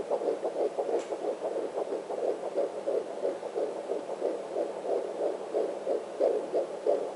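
A doppler monitor gives out a rapid, rhythmic whooshing heartbeat through a small loudspeaker.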